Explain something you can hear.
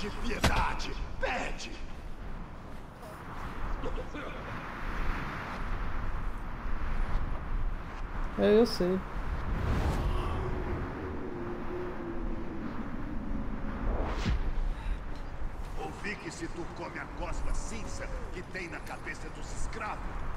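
A middle-aged man talks calmly into a headset microphone.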